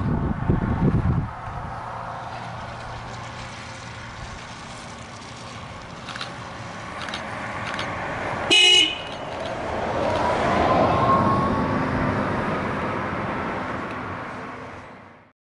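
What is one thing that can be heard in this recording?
A bus approaches along a road and passes close by with a rising electric whine.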